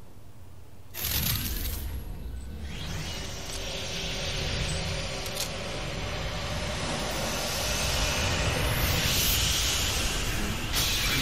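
A loud magical surge roars and crackles with electricity.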